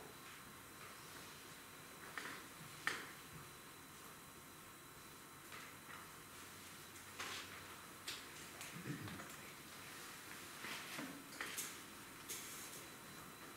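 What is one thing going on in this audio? Soft electronic hisses and swells play through loudspeakers in a quiet hall.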